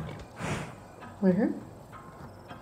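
A horse snorts and whinnies.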